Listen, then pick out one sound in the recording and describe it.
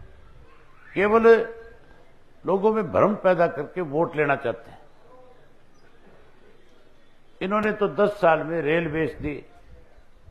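A middle-aged man speaks loudly into a microphone, in short bursts with pauses.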